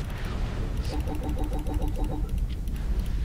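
Short electronic beeps pulse quickly in a row.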